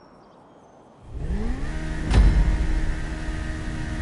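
A motorcycle engine idles and revs.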